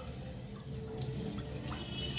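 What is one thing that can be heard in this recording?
Water pours from a mug into a pot.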